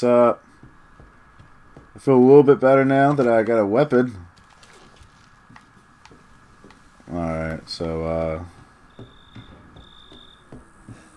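Slow footsteps tread on a wooden floor.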